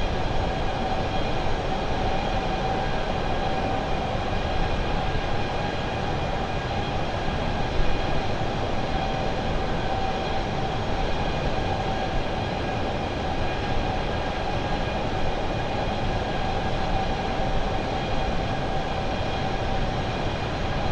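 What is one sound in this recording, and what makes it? Jet engines roar steadily as an airliner cruises.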